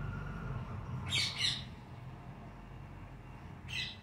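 Parakeets' wings flutter as the birds take off.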